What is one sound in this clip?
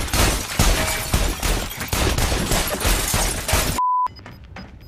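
Sparks burst and crackle loudly.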